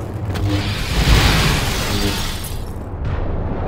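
An energy blade crackles and sizzles as blaster bolts strike it.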